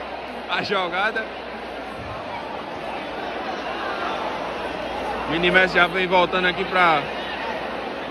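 A crowd of children and adults chatters in an echoing hall.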